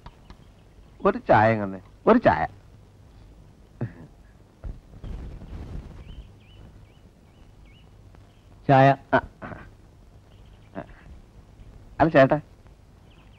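Men speak calmly nearby, with short pauses.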